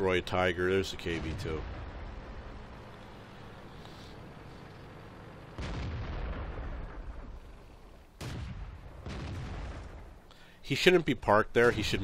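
A tank engine rumbles.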